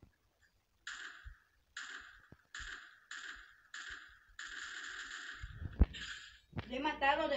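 A rifle fires in rapid bursts of shots.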